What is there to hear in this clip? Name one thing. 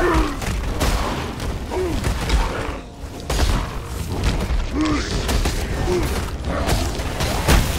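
Spells crackle and burst with fiery blasts.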